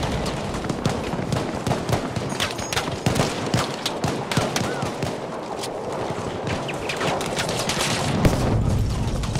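Rifle shots crack rapidly and echo off rock.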